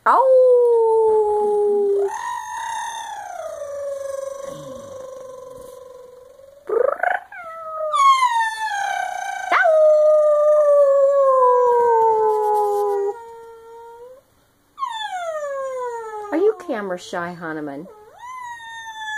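A woman howls loudly up close in long sliding wails.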